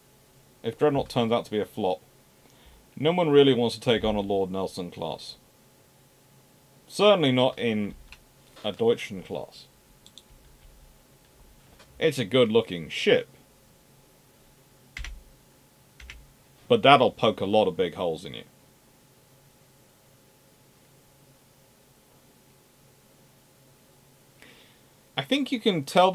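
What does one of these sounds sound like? A man talks calmly and close to a microphone, in bursts with pauses.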